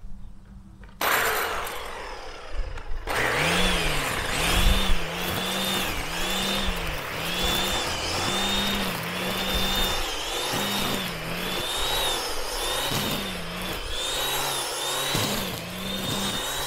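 A string trimmer whines loudly close by, its pitch rising and dipping as it cuts grass.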